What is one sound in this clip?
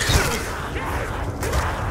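Zombies growl and groan close by.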